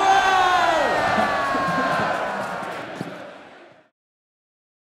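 A large crowd cheers and applauds outdoors, then fades away.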